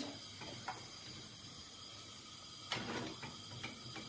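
A spoon scrapes against a frying pan.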